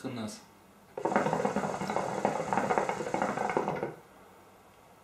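A water pipe bubbles loudly as smoke is drawn through it.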